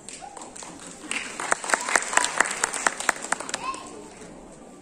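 Children clap their hands in a quick rhythm.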